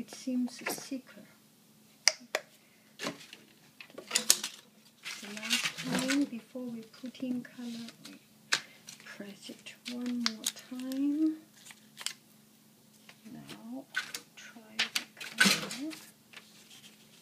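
A plastic bottle crinkles and clicks as hands handle it.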